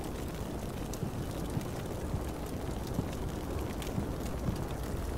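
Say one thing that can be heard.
Guns fire with dull booms, again and again.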